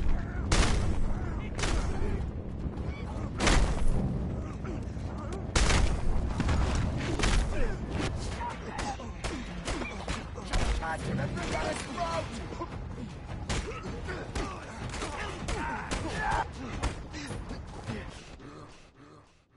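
Men grunt and shout as they fight.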